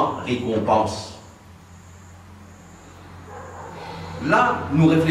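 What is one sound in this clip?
An elderly man speaks calmly and closely, pausing between phrases.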